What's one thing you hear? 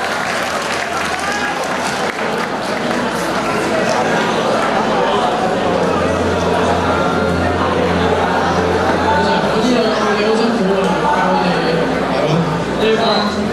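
A crowd of young people chatters and laughs.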